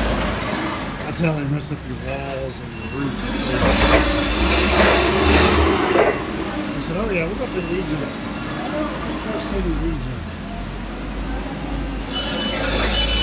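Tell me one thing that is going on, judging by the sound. A forklift engine hums and rumbles steadily inside a hollow, echoing space.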